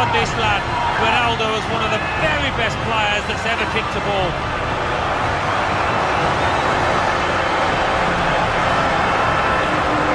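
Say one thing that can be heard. A large crowd cheers and roars in a big stadium.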